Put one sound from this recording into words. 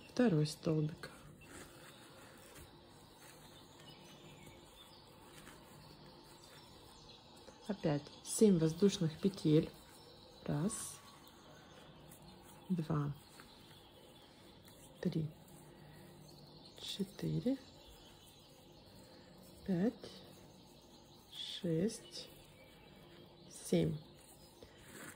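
Yarn rustles softly as a crochet hook pulls loops through stitches.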